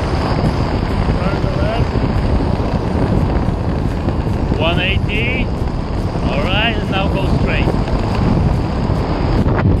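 Wind rushes loudly and steadily past the microphone.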